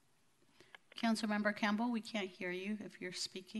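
A woman speaks calmly over a phone line.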